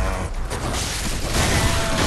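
Fire roars in a burst of flame.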